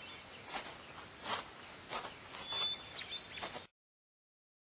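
Boots crunch on gravel with slow, heavy steps.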